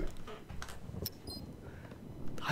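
An electronic card reader beeps softly.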